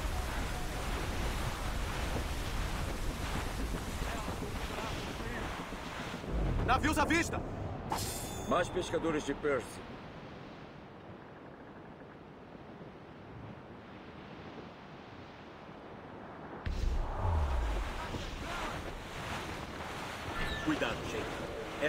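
Wind and sea waves rush steadily.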